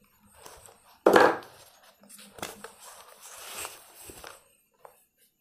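Paper pages rustle as a booklet is handled.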